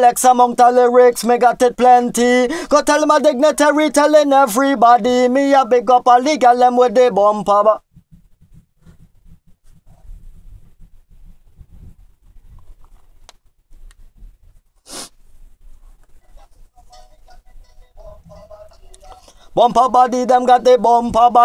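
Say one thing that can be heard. A man sings close to a microphone.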